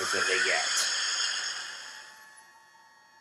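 Video game sound effects ring and shimmer, then fade away.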